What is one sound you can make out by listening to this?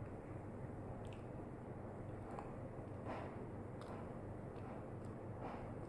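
A spoon clicks and scrapes against a plastic cup.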